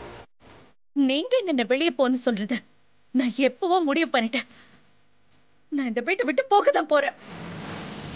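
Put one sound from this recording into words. A young woman speaks with distress, close by.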